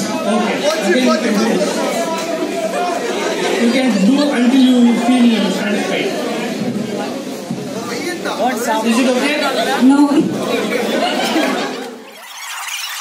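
A man talks with animation through a microphone over loudspeakers.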